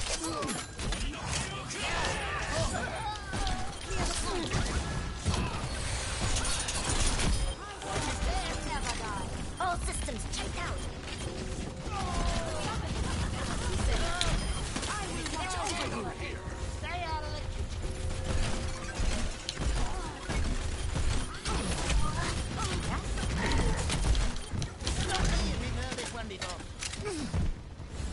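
Video game gunfire and explosions crackle and boom rapidly.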